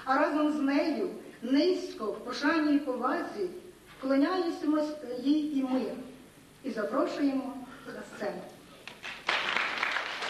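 A woman sings loudly through a microphone in an echoing hall.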